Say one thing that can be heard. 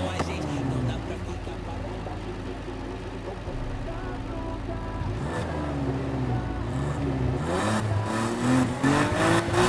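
A car engine idles and revs in short bursts.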